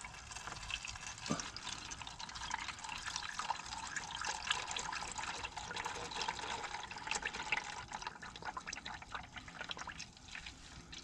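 Oil gurgles and crackles as it drains through a tube.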